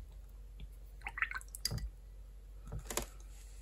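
A brush swishes and taps in a jar of water.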